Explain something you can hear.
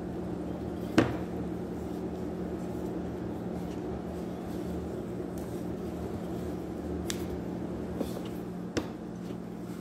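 A rolling pin knocks against a counter.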